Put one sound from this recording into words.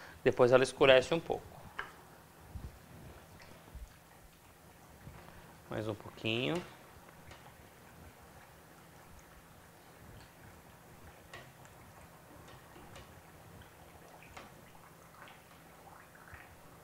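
Oil sizzles softly in a pan.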